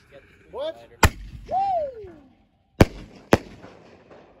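Firework shells burst with loud sharp bangs overhead.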